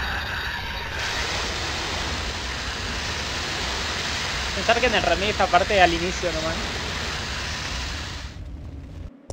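A fire roars loudly.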